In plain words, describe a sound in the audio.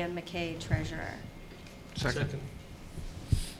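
A man speaks briefly and quietly, heard through a room microphone.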